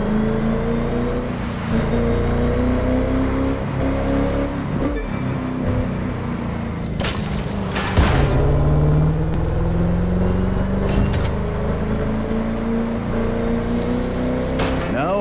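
A sports car engine roars steadily at high speed, rising and falling in pitch as it shifts gears.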